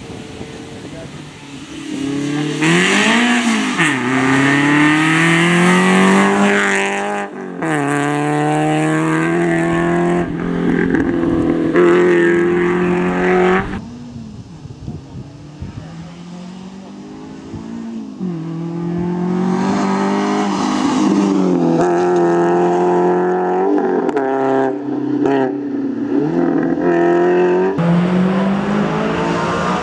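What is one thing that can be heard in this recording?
A rally car engine roars loudly, revving hard and shifting gears as the car speeds past.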